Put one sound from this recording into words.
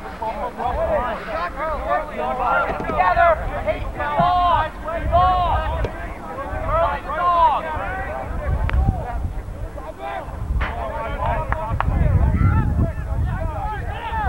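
Young men and boys shout and call out across an open field.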